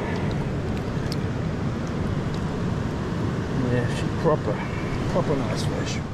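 Water splashes as a fish thrashes in a net.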